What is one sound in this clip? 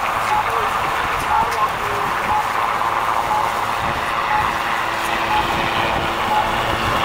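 A helicopter's rotor thumps loudly and steadily as it hovers close by.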